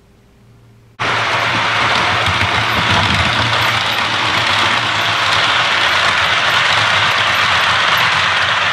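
A model train rumbles and whirs along its tracks.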